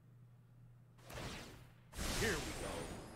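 A bright shimmering chime rings out.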